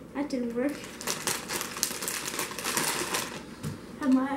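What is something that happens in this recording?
A plastic bag crinkles and rustles as it is handled up close.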